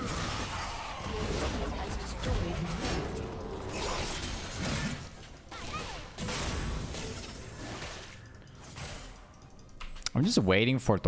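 Game spells whoosh and clash in quick bursts.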